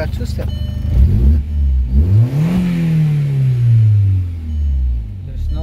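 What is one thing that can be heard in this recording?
A car engine revs up and then winds back down.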